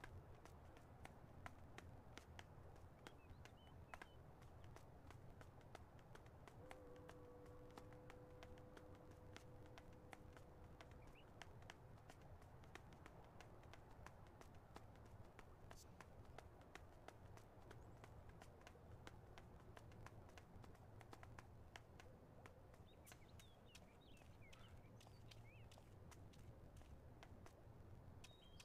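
Footsteps patter quickly on pavement as a runner jogs.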